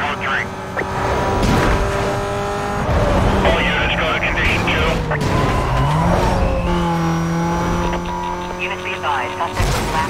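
A sports car engine roars at high speed and shifts through the gears.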